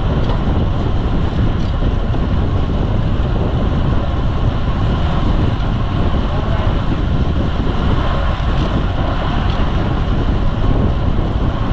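Wind roars loudly and steadily past a fast-moving bicycle, outdoors.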